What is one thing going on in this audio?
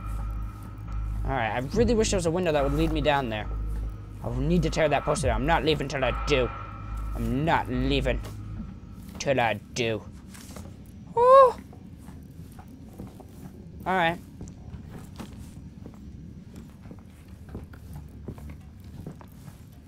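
Footsteps thud on creaking wooden boards.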